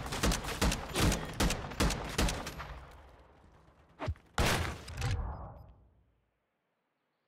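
A rifle fires a rapid burst of loud shots that echo away.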